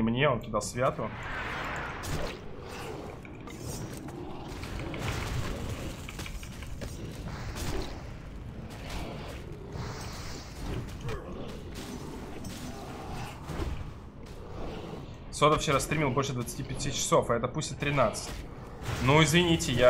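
Weapons clash and magic bursts in a fierce fight.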